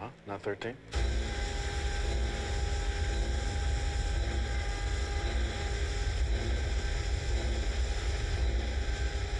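Steam hisses and roars from pipes.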